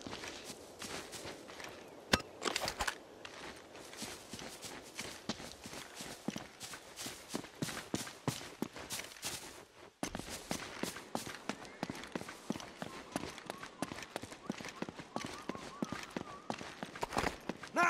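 Footsteps run quickly over ground and stone.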